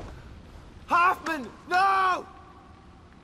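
A man shouts out in distress.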